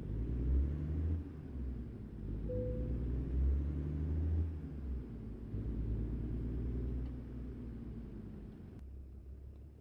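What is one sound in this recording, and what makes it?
A truck engine rumbles low and steady, then quiets down.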